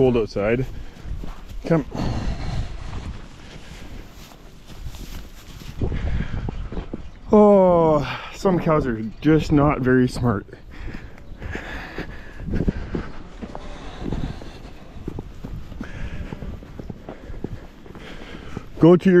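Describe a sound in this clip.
Footsteps crunch through dry straw.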